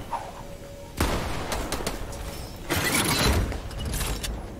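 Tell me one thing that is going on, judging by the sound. Video game building pieces snap into place with sharp clatters.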